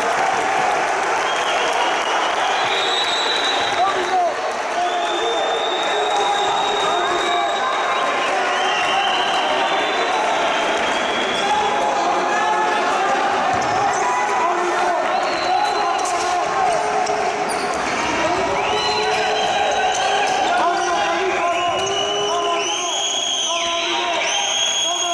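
A crowd of spectators shouts and cheers in an echoing sports hall.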